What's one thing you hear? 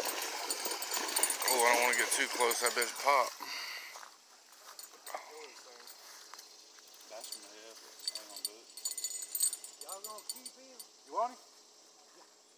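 A man talks excitedly nearby.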